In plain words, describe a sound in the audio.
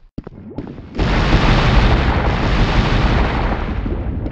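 Lava rumbles and hisses steadily.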